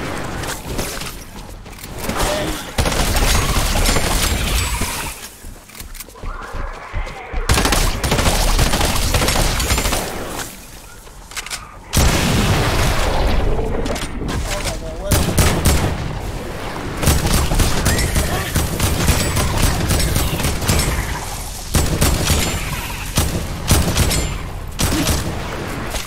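Gunshots fire in rapid bursts from a game.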